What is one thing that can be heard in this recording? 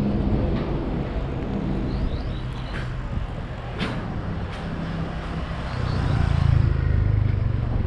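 A motor scooter approaches and passes nearby.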